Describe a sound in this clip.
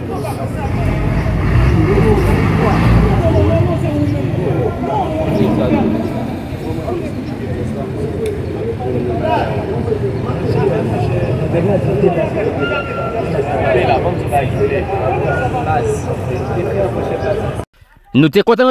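Men and women talk over each other nearby, outdoors.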